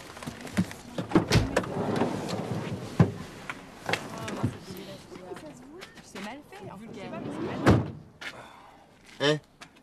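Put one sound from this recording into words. A younger man speaks anxiously, close by.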